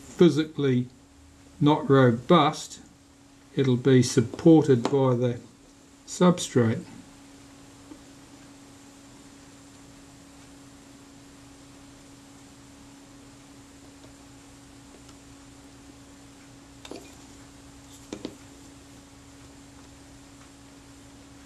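A cotton swab rubs softly against a small metal part.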